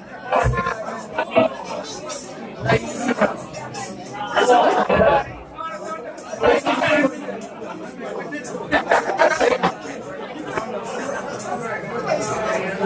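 A crowd chatters in a large room.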